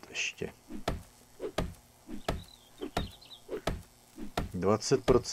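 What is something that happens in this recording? A club strikes a wooden crate with repeated dull knocks.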